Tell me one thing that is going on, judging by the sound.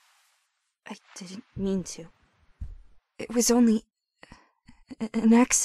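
A young woman speaks emotionally and upset, close by.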